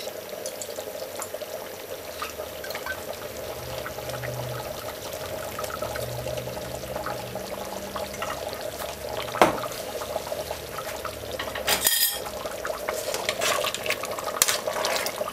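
A thick stew bubbles and simmers in a pot.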